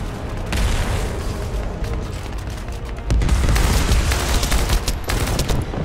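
A huge creature growls and roars low.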